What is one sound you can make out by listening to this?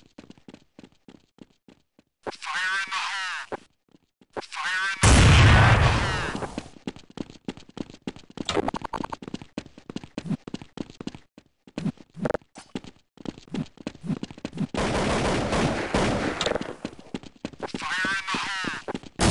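Footsteps tap quickly and steadily on stone.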